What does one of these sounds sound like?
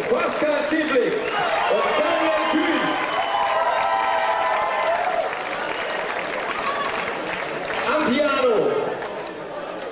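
Saxophones play a lively jazz tune.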